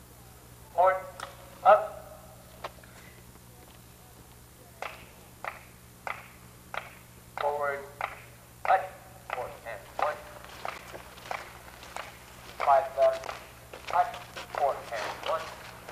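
A marching band plays short, punchy notes outdoors.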